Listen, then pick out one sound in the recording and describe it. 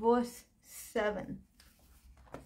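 A woman speaks briefly and quietly close by.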